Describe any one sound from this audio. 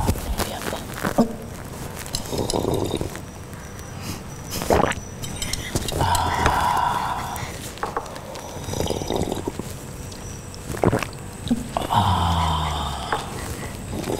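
A man slurps a hot drink.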